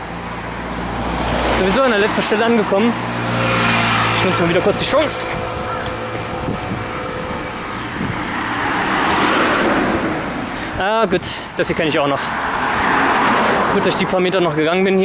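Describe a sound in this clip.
Cars drive past close by on a road.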